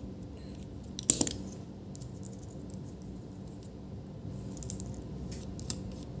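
Fingers tap and scrape on hard plastic and metal parts.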